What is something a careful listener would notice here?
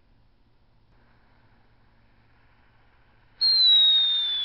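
A firework fuse fizzes and hisses.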